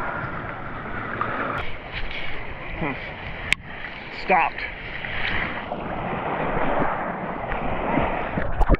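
Water laps and splashes close against the microphone, outdoors in wind.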